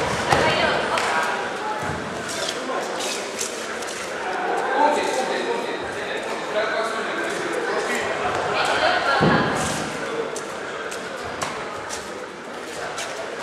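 A crowd chatters and calls out nearby in an echoing hall.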